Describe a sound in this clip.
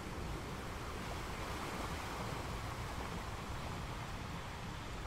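Ocean waves crash and roll steadily onto rocks.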